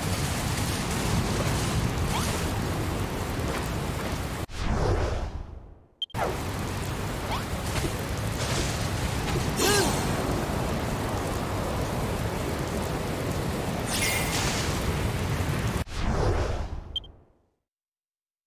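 Wind blows steadily in a storm, with a low rumble.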